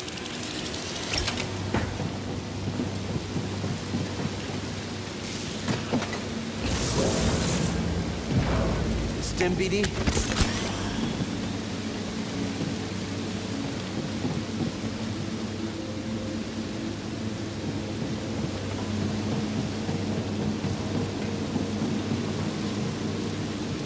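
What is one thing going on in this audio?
A large machine hums low and steadily.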